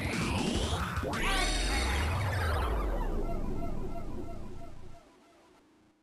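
A video game whirlwind sound effect whooshes and swirls, then fades away.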